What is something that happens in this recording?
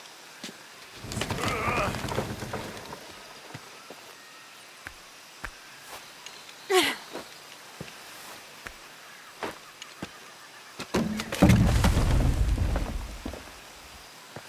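Leaves rustle as someone pushes through brush.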